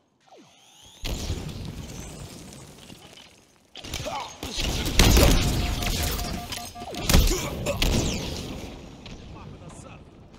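Gunfire and explosions boom loudly in a video game.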